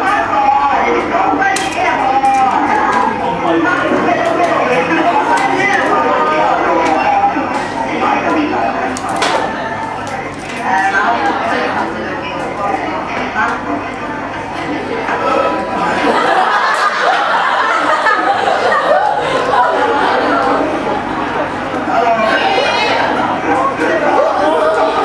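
Several young people talk over each other, heard through a loudspeaker in a room.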